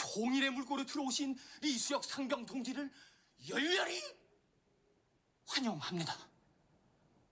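A man speaks forcefully and with emotion, close by.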